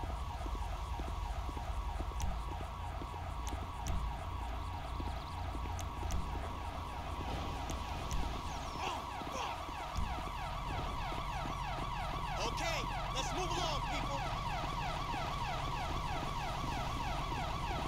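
Footsteps tread on pavement.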